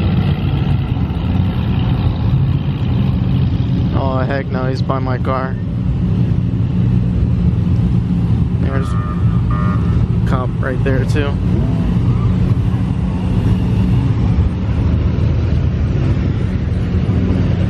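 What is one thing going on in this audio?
Car engines idle with a steady low rumble.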